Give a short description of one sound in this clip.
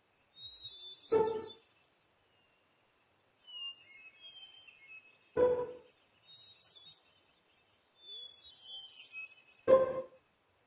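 A short chime sounds each time a letter is entered.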